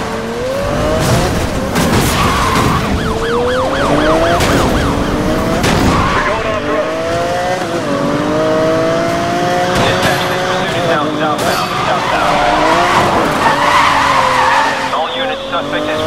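Tyres screech while a car drifts.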